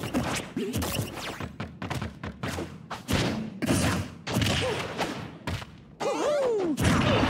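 Punches and kicks land with sharp thuds and smacks in quick succession.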